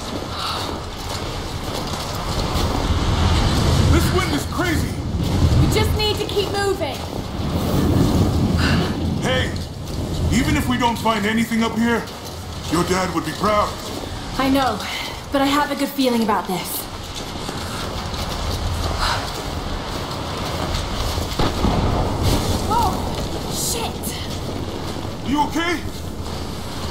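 Wind howls and gusts outdoors.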